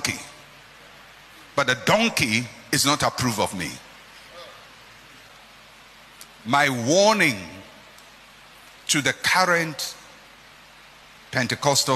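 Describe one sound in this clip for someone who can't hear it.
A man speaks with emphasis into a microphone, in bursts with pauses.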